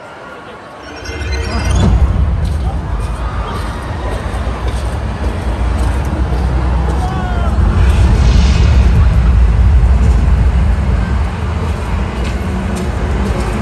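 Loud music with heavy booming bass plays through big loudspeakers.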